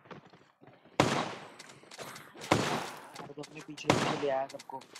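Gunshots crack loudly, a few times.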